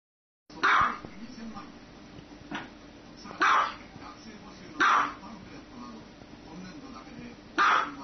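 A small dog barks in sharp, high-pitched yaps.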